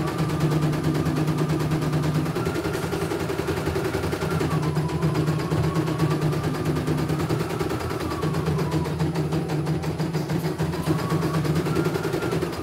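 An embroidery machine's motor whines, rising and falling in pitch.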